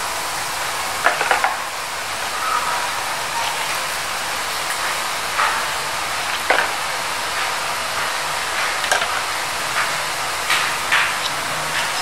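A metal ladle clinks against a pan.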